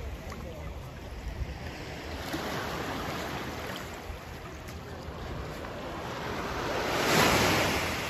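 Shallow waves wash over sand close by.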